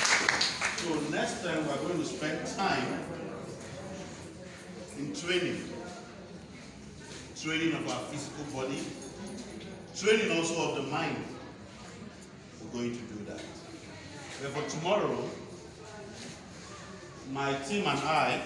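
A man speaks loudly and with animation in a room that echoes.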